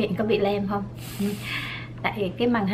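A can of whipped cream hisses as it sprays.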